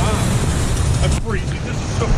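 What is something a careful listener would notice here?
A middle-aged man speaks cheerfully close by.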